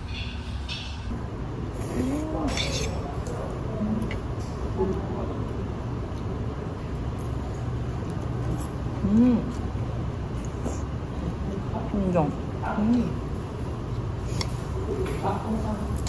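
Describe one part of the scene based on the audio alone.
Metal chopsticks clink against a bowl.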